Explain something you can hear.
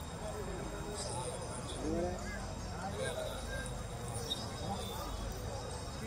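An elephant rustles and snaps branches.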